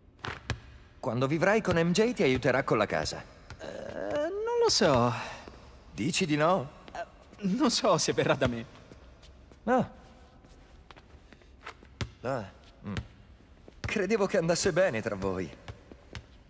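A second young man answers with animation.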